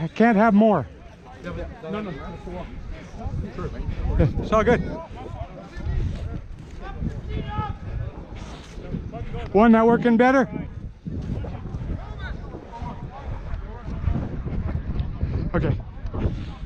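Young men shout loudly nearby, outdoors.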